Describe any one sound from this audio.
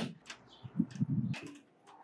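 A door handle clicks as it is turned.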